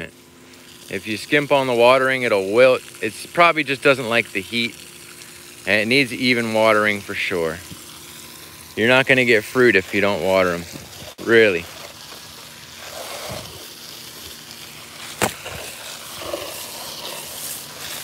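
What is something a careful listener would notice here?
Water sprays from a hose and splashes onto mulch and leaves.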